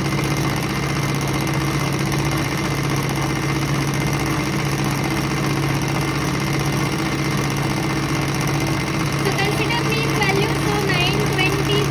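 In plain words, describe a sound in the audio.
An electric motor hums steadily at high speed.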